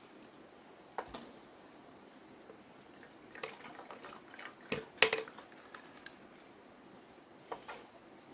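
Chopsticks knock against a metal pot.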